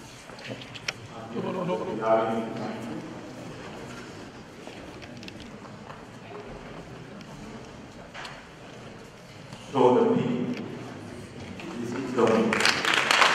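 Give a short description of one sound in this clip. A man speaks briefly over a loudspeaker in a large echoing hall.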